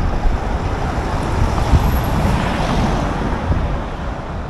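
A lorry drives past nearby with a low rumble.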